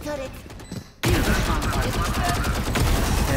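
Rapid gunshots ring out in a video game.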